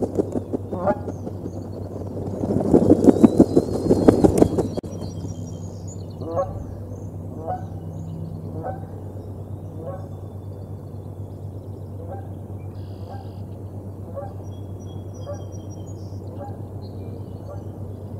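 An eaglet peeps repeatedly in short, rising cries.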